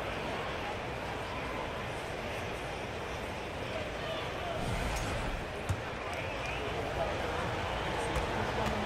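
A crowd murmurs steadily in a large arena.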